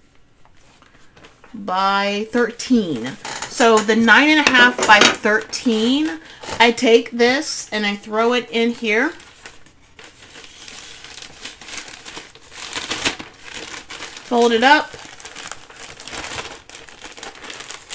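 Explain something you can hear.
Fabric rustles and crinkles as it is handled.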